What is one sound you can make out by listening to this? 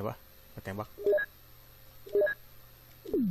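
Short electronic menu beeps sound as selections are made.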